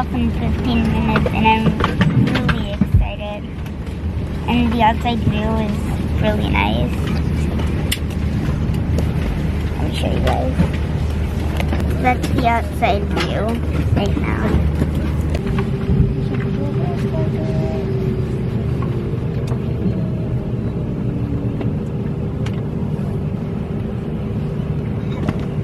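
A steady low hum of an aircraft cabin fills the air.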